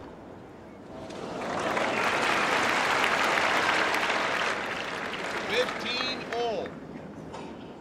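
A crowd applauds and cheers loudly, then fades.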